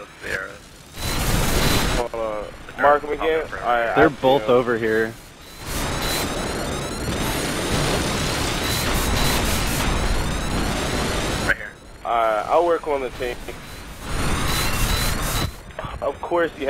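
Explosions boom and roar loudly.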